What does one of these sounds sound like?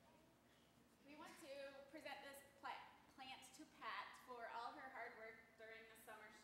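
A woman speaks calmly to children.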